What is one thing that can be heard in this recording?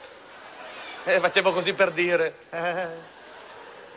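A man laughs.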